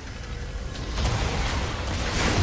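Magic spell effects whoosh and burst in a video game fight.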